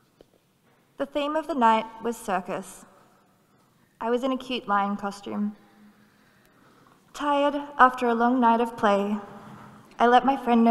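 A woman speaks through a microphone in halting bursts.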